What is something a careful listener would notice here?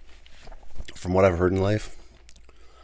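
A man hums briefly close to a microphone.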